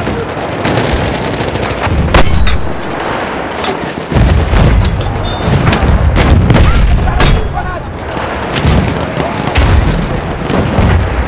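Gunshots crack sharply, again and again.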